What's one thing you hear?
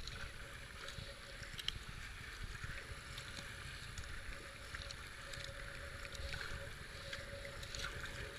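A kayak paddle splashes into the water.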